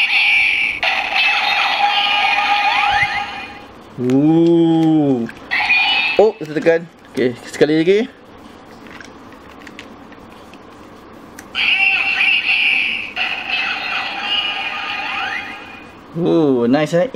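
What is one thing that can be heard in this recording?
A toy weapon plays loud electronic music and sound effects.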